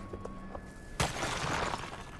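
A heavy landing thumps on concrete.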